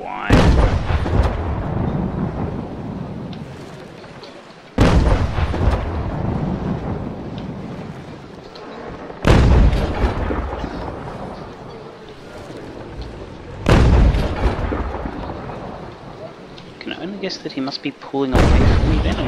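Heavy cannon fire booms again and again, each blast rumbling away slowly.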